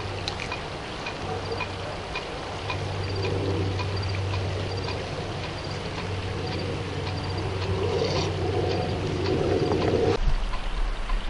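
A camping stove roars steadily close by.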